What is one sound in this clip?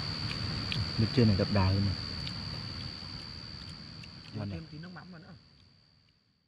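A young man speaks casually up close.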